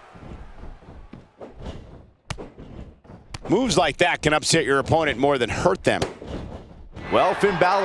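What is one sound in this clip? Bodies thud hard onto a wrestling ring mat.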